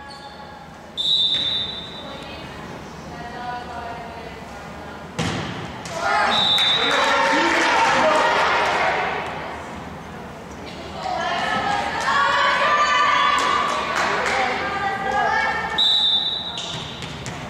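A referee's whistle blows short, shrill blasts.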